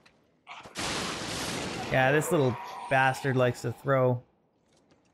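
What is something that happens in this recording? A fireball bursts with a roar.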